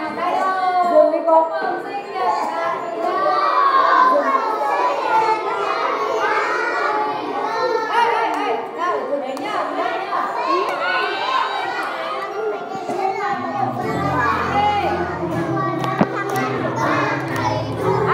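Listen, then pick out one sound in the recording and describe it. A crowd of young children chatter and shout excitedly close by.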